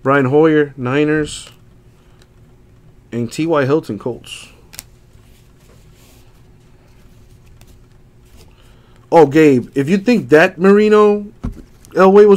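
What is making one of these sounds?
Trading cards slide and tap together as they are handled.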